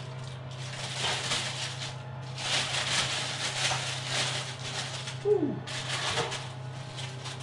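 Baking paper rustles and crinkles loudly.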